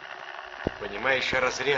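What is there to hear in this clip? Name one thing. A man speaks quietly and closely.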